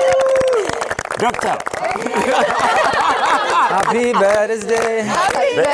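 A crowd of men and women cheer and whoop loudly.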